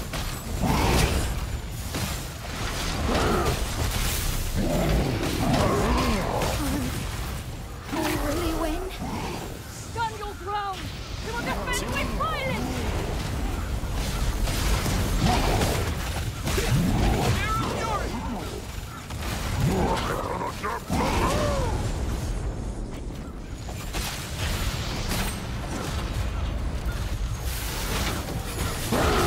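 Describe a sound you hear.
Magic blasts crackle and boom.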